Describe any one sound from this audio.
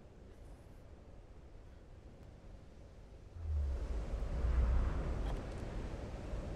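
A bowstring creaks as it is drawn taut.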